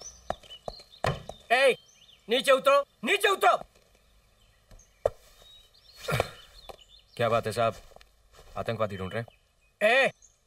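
A middle-aged man speaks loudly and with animation, close by.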